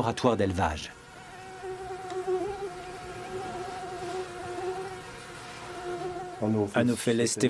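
A mosquito whines steadily close by.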